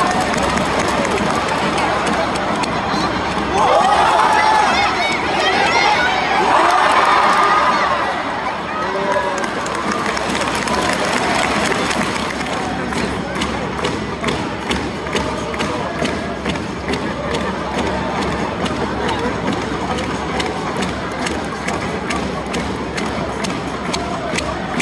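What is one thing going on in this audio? A large stadium crowd murmurs and cheers throughout.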